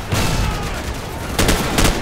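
A helicopter roars overhead.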